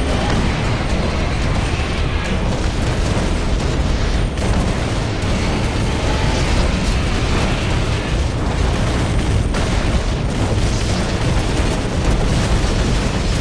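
Gunfire rattles rapidly and constantly.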